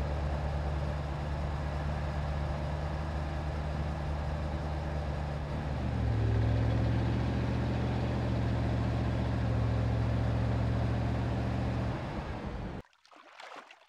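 A car engine hums steadily as a limousine drives along.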